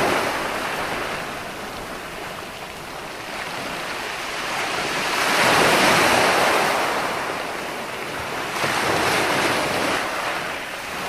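Ocean waves roll in and crash, swelling and receding in a steady rush.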